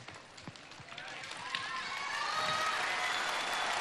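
A young woman sings on stage, her voice echoing through a large hall.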